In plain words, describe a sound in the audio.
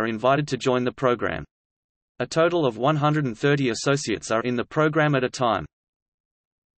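A man speaks calmly and close, as if into a microphone.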